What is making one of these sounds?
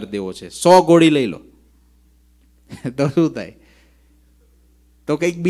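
A man speaks animatedly into a close microphone, with pauses.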